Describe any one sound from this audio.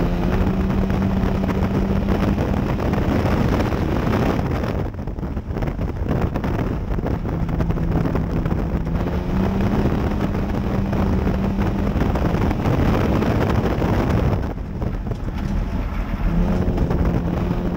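A race car engine roars loudly from inside the car, rising and falling as it lifts off and speeds up again.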